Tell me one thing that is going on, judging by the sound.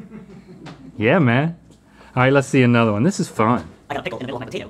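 A second man laughs and exclaims.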